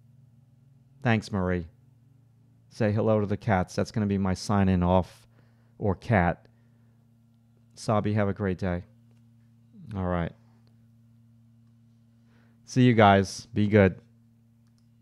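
A middle-aged man speaks calmly and close into a microphone, with short pauses.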